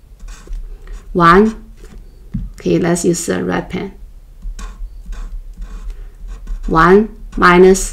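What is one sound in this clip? A marker scratches on paper.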